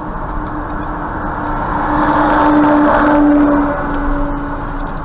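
A heavy lorry rumbles past close by and fades ahead.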